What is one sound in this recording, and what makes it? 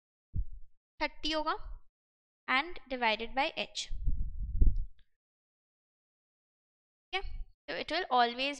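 A young woman speaks calmly into a microphone, in short phrases with pauses.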